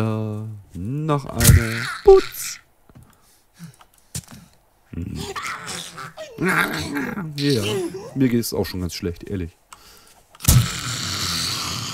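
A zombie snarls and groans nearby.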